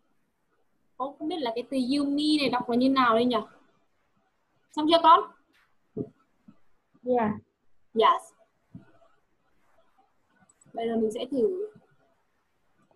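A young woman speaks in short bursts through a computer microphone.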